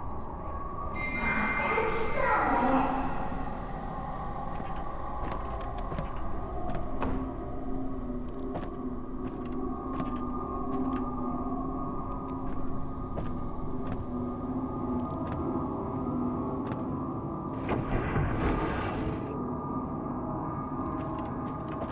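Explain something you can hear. Footsteps creak on a wooden floor.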